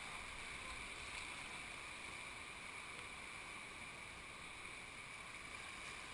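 A swift whitewater river rushes and churns.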